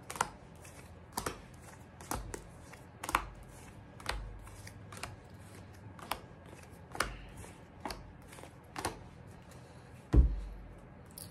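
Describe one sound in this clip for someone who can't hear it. Cards are flicked and tapped down one after another close by.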